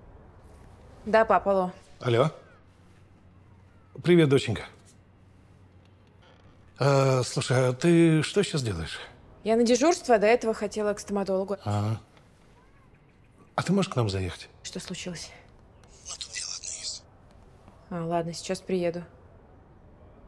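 A young woman talks on a phone.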